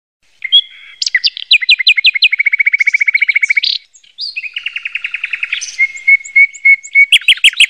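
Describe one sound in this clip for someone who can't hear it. Sparrows chirp and trill rapidly nearby.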